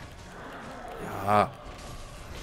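A young man shouts loudly close to a microphone.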